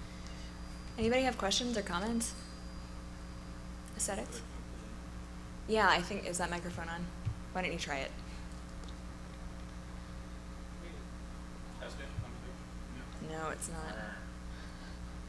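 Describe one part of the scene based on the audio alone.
A young woman speaks calmly into a microphone, in short bursts with pauses.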